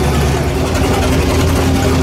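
A truck engine rumbles while driving.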